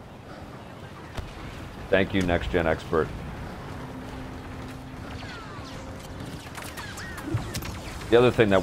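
Laser blasters fire in short bursts.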